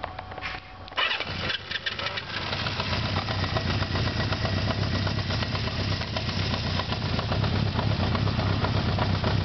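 A motorcycle engine sputters to life and idles steadily close by.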